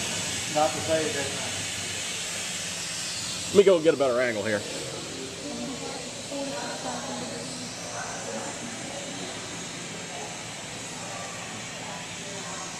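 A gas torch roars with a steady hiss.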